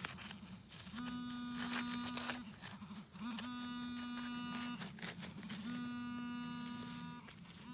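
A metal detector beeps in long, steady tones.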